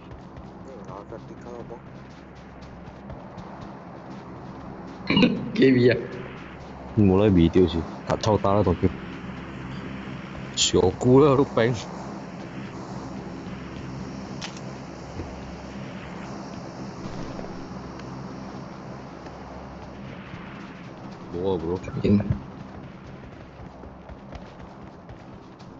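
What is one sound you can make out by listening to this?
Footsteps crunch quickly on snow and dry grass.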